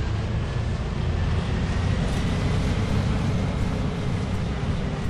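Tyres roll on the road surface with a steady hiss.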